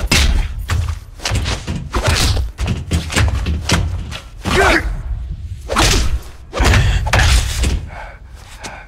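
Heavy punches and kicks land with loud thuds in a fistfight.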